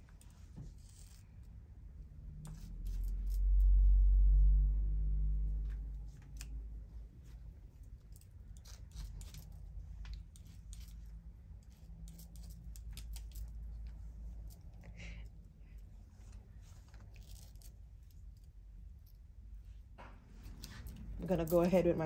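Scissors snip through hair in short, quiet cuts.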